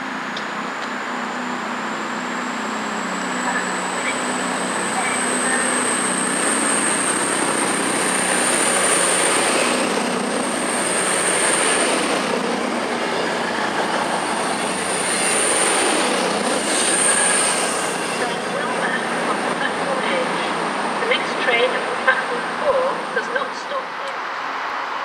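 A train approaches and rushes past close by with a loud roar and rising whine.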